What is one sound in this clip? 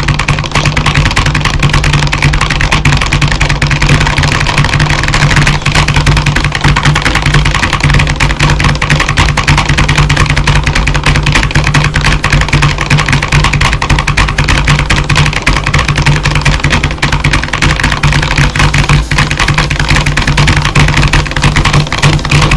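Keyboard keys clatter rapidly under fast tapping fingers.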